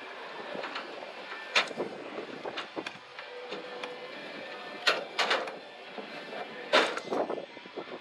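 Footsteps clank on a metal grate.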